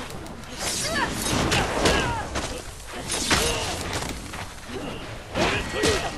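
Fighters' blows land with heavy thuds.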